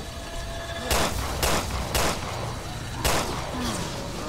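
Gunshots bang sharply several times.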